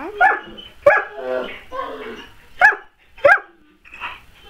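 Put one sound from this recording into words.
A dog barks sharply close by.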